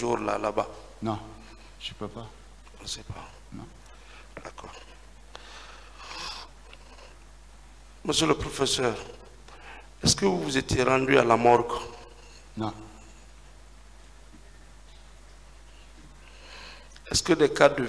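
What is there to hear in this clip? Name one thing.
An older man speaks into a microphone on a stand.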